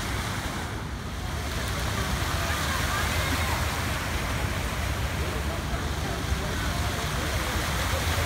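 Fountain jets splash and spray steadily into water.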